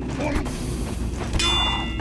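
A flamethrower roars in a short burst.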